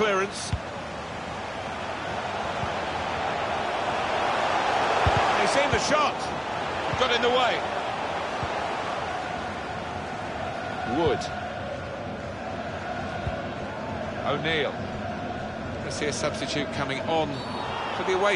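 A man talks now and then, close to a microphone.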